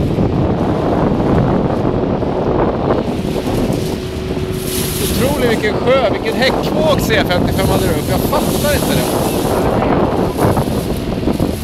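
Water splashes and rushes against a hull.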